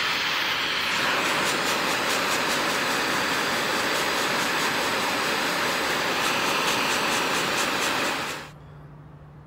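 Hot metal hisses loudly as it is quenched.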